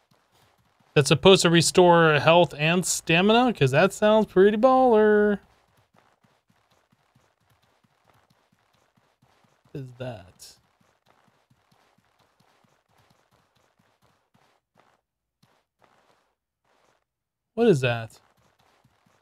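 A man speaks casually into a close microphone, in short bursts.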